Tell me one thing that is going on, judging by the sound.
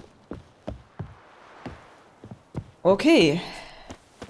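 Footsteps thud on a wooden walkway.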